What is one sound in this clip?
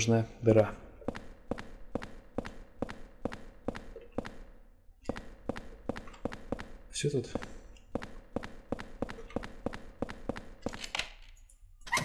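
Footsteps tread steadily on a hard floor.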